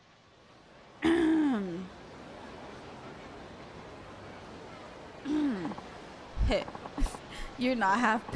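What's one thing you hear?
A young woman speaks expressively into a close microphone.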